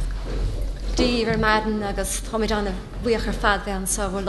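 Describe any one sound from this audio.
A woman speaks calmly through a microphone in a large, echoing room.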